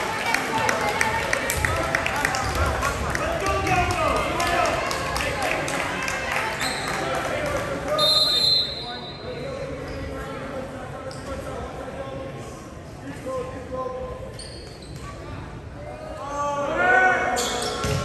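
Young men call out and chatter loudly in a large echoing hall.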